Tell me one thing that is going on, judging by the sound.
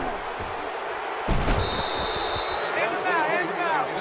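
Football players collide in a tackle with heavy thuds.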